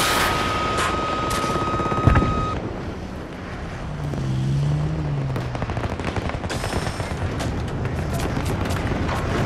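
A jet engine roars steadily as a fighter plane flies low.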